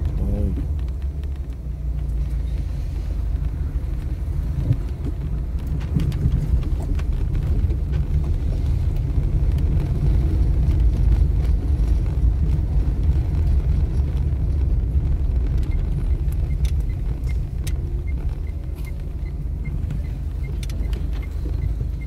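Tyres rumble over a cobbled road.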